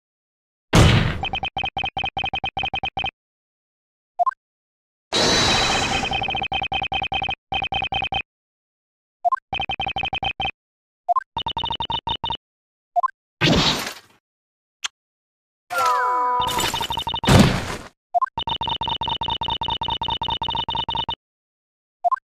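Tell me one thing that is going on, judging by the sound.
Rapid electronic blips tick in quick bursts.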